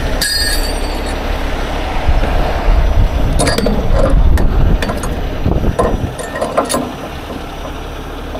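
A small vehicle's engine rumbles while driving.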